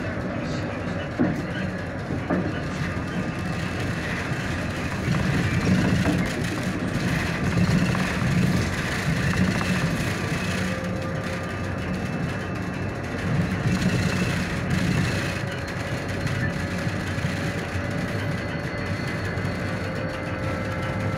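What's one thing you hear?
A vehicle's engine hums steadily as it drives along a road.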